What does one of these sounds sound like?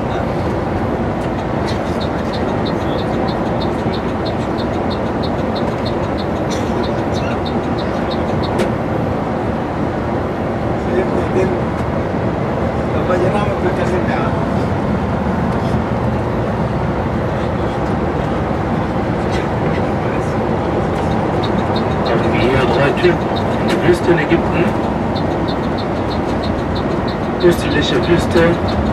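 Tyres roll with a steady rumble on smooth asphalt.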